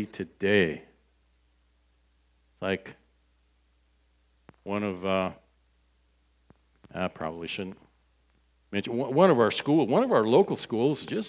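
An older man speaks with feeling through a microphone, in bursts with long pauses.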